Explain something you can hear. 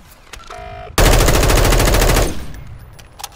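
A rifle fires a rapid burst of automatic shots.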